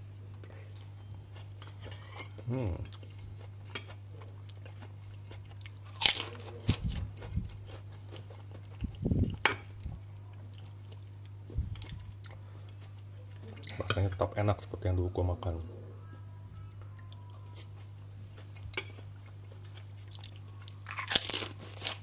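A metal spoon scrapes and clinks against a plate.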